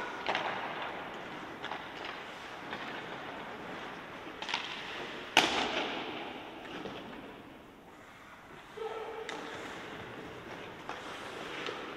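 Hockey sticks clack against a puck, echoing in a large hall.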